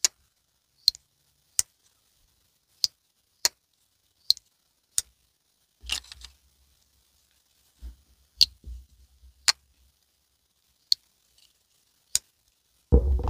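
A folding knife blade snaps open and shut with sharp clicks, close by.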